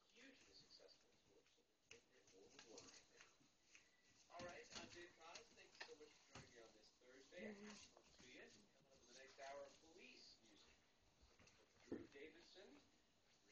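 Puppies whine and yelp close by.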